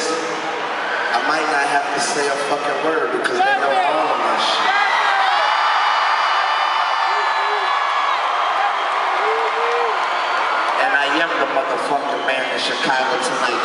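A large crowd cheers and sings along in a big echoing arena.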